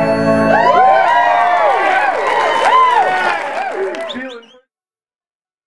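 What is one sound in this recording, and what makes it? A string band plays lively music through loudspeakers.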